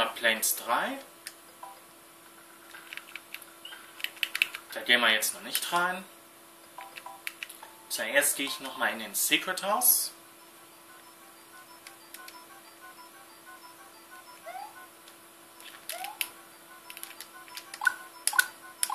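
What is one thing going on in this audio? Chiptune music and sound effects from a 16-bit console game play through a TV speaker.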